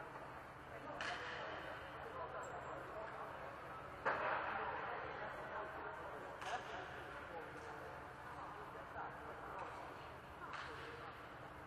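A volleyball thuds as players hit it, echoing in a large hall.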